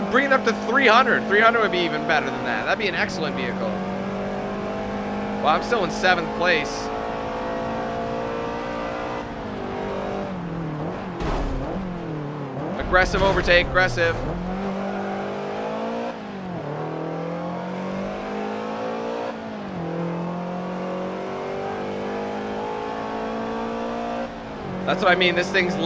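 A car engine roars steadily, rising and falling in pitch as gears shift.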